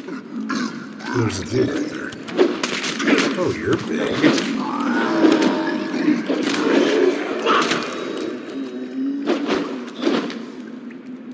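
Weapon blows strike a creature in a fight.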